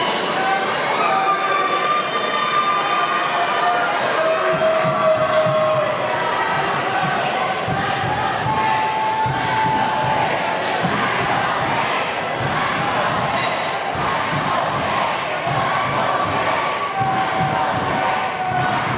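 A large crowd cheers and shouts in an echoing hall.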